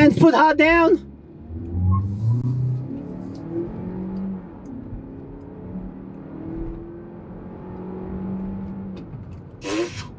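A car engine revs hard and climbs through its gears as the car accelerates.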